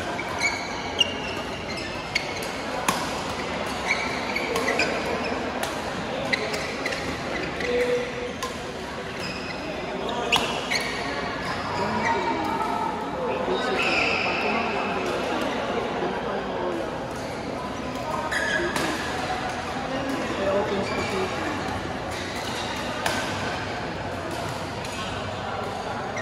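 Many people talk and call out in the background.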